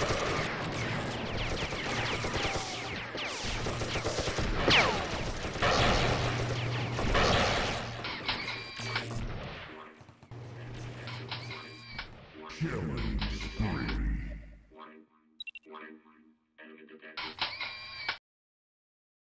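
Guns fire rapidly in a fast-paced shooting game.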